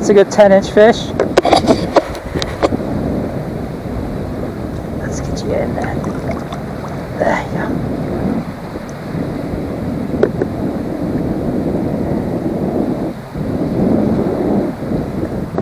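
Water laps and splashes gently nearby.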